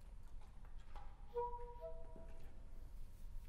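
A clarinet plays a few short, soft notes in a large hall.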